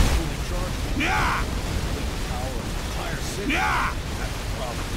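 A giant creature screeches with a rising and falling cry.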